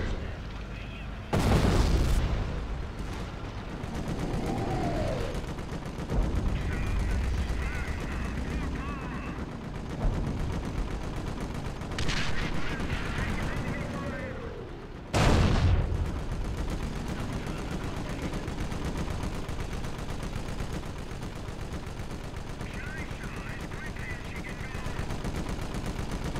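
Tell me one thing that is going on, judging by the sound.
Tank engines rumble and clank.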